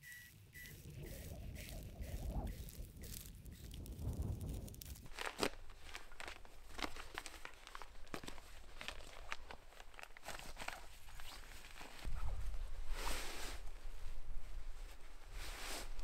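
Nylon fabric rustles and crinkles close by.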